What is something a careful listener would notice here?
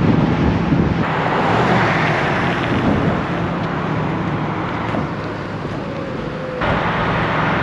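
A muscle car's engine rumbles as it drives past.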